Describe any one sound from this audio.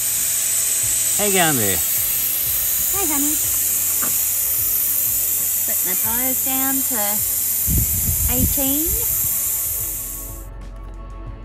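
Air hisses steadily out of a tyre valve.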